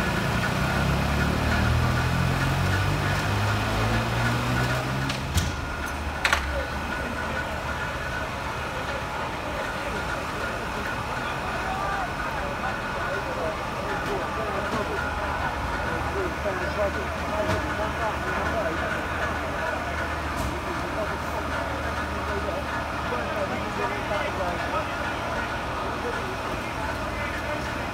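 A fire engine's engine idles steadily nearby.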